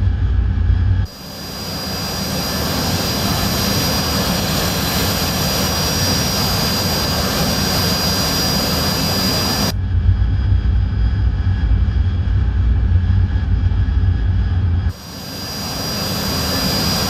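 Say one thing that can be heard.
A jet engine roars with a high, steady whine.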